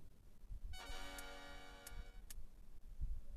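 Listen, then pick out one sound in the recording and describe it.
A bright chiming jingle plays briefly.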